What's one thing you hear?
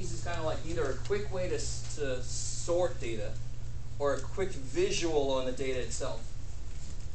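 A man speaks calmly, a few steps away.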